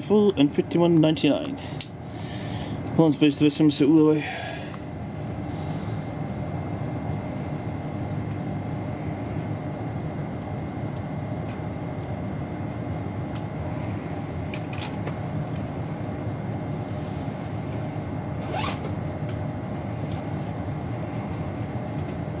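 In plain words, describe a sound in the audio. A train's engine hums steadily from inside a carriage.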